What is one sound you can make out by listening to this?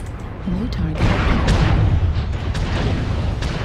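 An explosion booms with a rolling roar.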